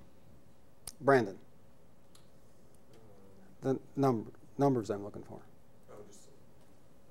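An elderly man speaks in short, halting bursts.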